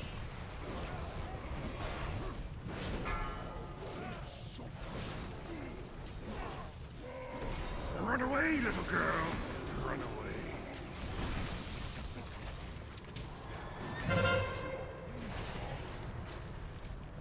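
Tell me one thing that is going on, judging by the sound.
Weapons clash and spells burst in a busy game fight.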